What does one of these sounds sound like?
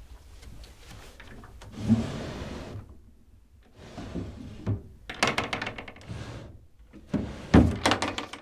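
Small objects rattle and rustle as they are handled.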